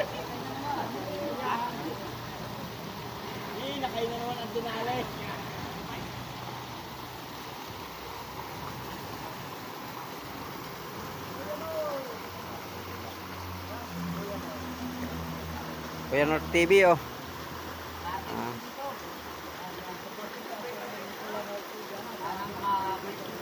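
A river flows and babbles steadily outdoors.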